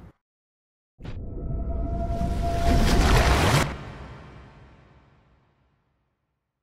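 A heavy machine rushes past with a loud swelling whoosh that fades away.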